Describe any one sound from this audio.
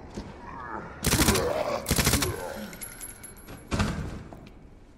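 A handgun fires several loud shots indoors.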